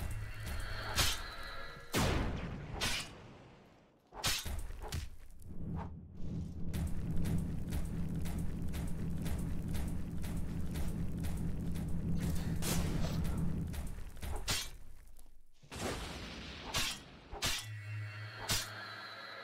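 Heavy stone blows crash with deep booms.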